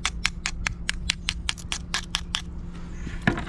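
A knife scrapes a shell in quick, regular strokes.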